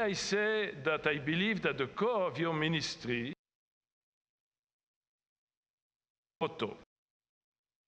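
An elderly man speaks slowly and solemnly through a microphone in a large echoing hall.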